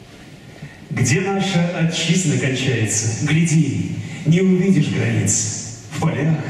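A man sings through a microphone over loudspeakers in a large hall.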